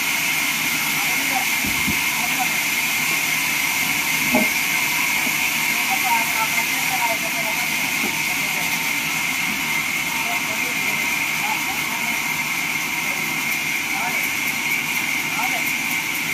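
A band saw whines steadily as it cuts through wood.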